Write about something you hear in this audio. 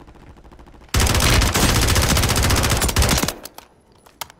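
A rifle fires a rapid burst.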